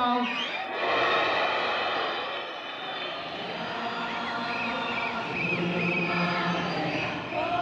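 A large crowd chants and cheers in a big echoing hall.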